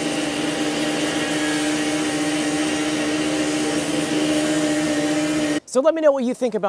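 A power saw whines steadily, cutting through concrete.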